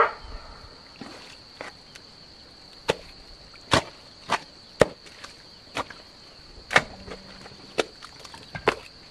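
Rubber boots squelch and splash in shallow muddy water.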